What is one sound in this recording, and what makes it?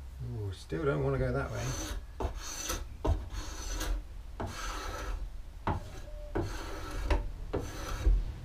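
A hand tool scrapes and shaves wood in quick strokes.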